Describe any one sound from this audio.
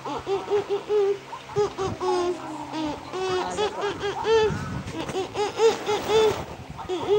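A little girl talks and babbles excitedly close by.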